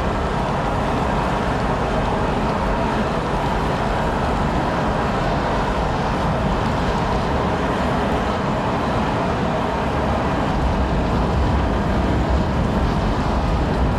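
Flames roar steadily inside a furnace.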